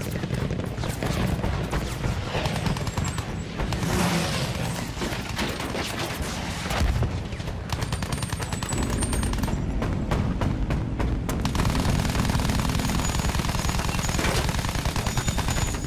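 Machine guns fire in rapid bursts.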